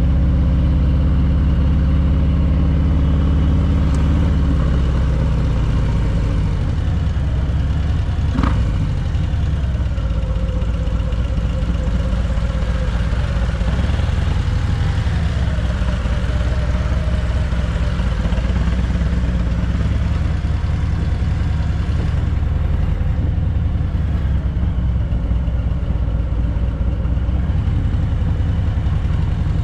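A motorcycle engine rumbles steadily up close as it rides slowly.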